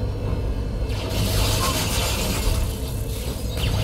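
A loud blast roars and crackles.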